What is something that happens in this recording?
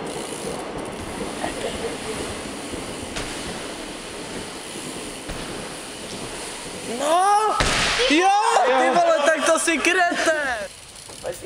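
Bike tyres roll and whir on a wooden ramp.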